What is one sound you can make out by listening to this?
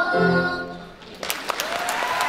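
A children's choir sings in a large echoing hall.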